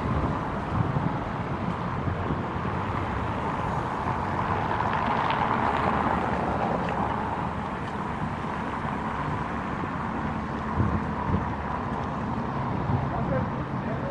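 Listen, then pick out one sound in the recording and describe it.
Footsteps tread on pavement outdoors.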